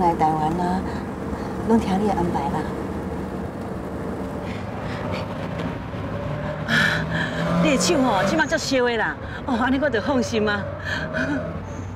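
A woman speaks warmly, close by.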